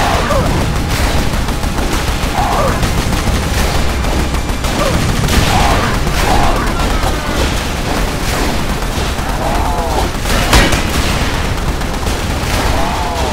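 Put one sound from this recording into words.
Explosions boom repeatedly.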